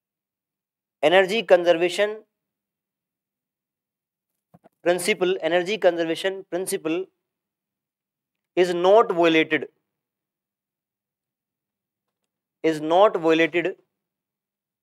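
A young man speaks calmly into a close microphone, in short phrases with pauses.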